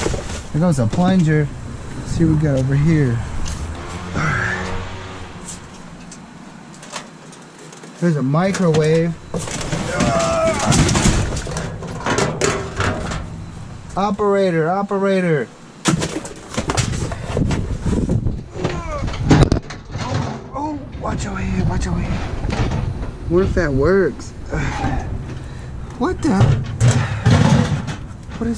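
Plastic and cardboard items clatter and thud as they are shifted around.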